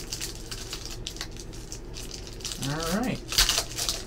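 Foil packs crinkle as hands tear them open.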